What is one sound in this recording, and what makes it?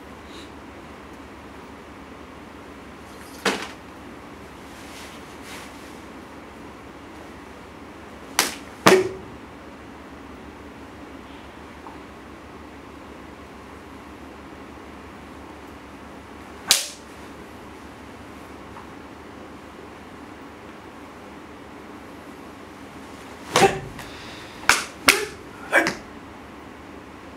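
Bare feet stamp on a wooden floor.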